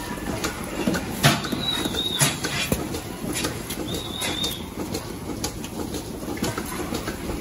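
Metal clanks as a milking cluster is handled.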